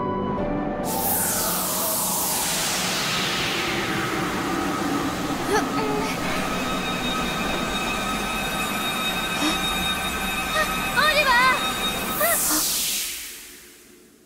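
A magical energy blast whooshes and hums loudly.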